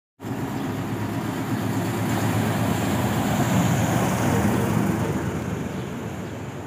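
A heavy truck rumbles past close by, its engine loud and then fading.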